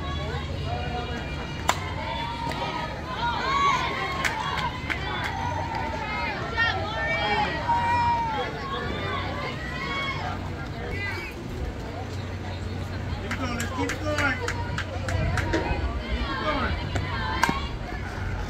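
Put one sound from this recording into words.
Young women shout and cheer across an open field.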